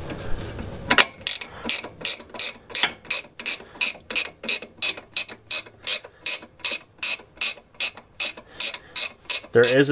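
A ratchet wrench clicks in a quick, steady rhythm.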